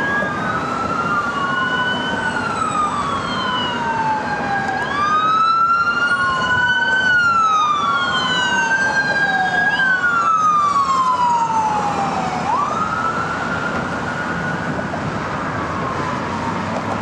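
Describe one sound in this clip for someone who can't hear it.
An ambulance siren wails, rising and falling, then fades into the distance.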